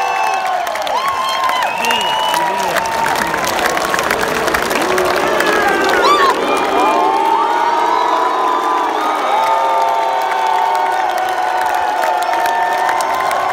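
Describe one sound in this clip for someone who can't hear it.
A rock band plays live through loud speakers, heard from within the crowd.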